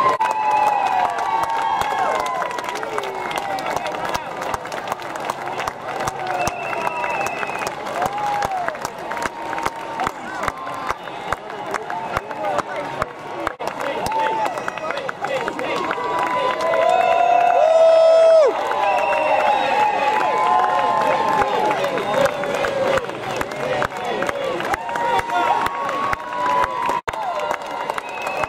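A large crowd cheers and screams outdoors.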